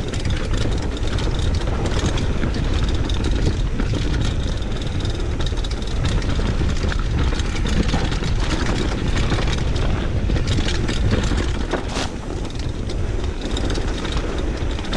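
Wind rumbles steadily across the microphone.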